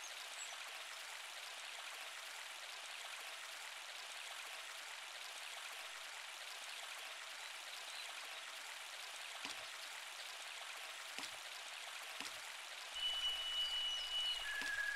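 A river rushes and babbles steadily.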